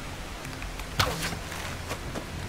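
An arrow thuds into wood.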